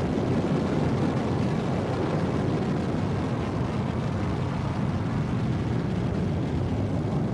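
A spaceship engine hums with a steady low rumble.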